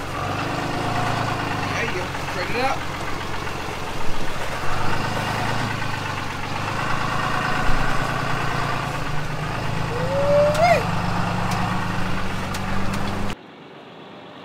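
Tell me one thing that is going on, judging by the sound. A car engine runs with a steady low hum.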